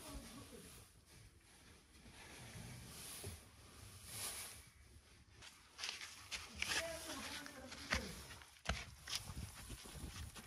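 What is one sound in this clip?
Cut fodder rustles as it is scooped and stuffed into a sack.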